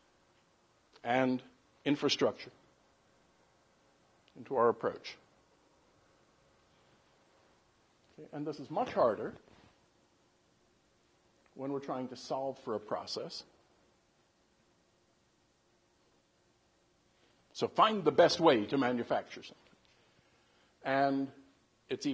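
An older man speaks calmly into a microphone in short bursts with pauses.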